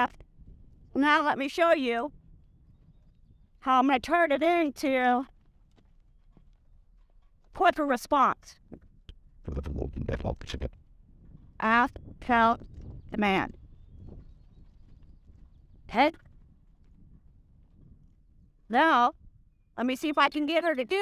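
A woman speaks calmly close to a microphone.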